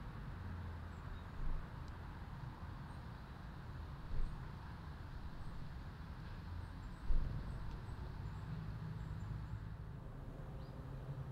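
Small birds chirp faintly outdoors.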